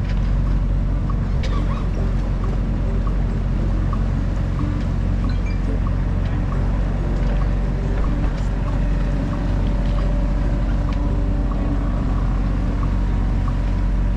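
Water splashes gently against a boat's hull.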